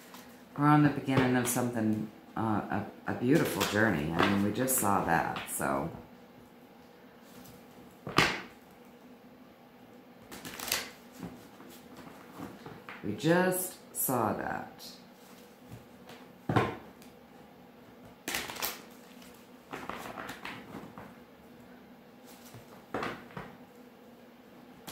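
Playing cards riffle and tap as they are shuffled.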